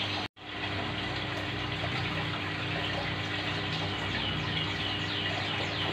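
Air bubbles gurgle and fizz steadily in water.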